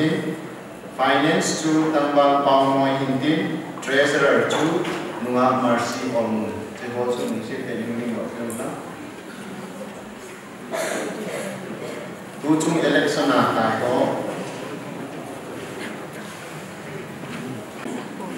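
A man speaks calmly into a microphone over a loudspeaker in an echoing hall.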